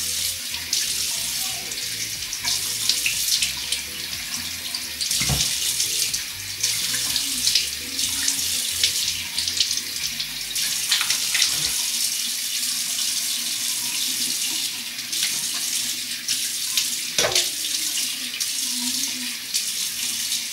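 Water splashes as a woman rinses her face.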